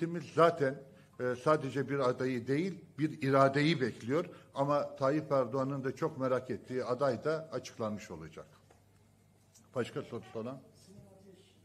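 A man speaks firmly into a microphone.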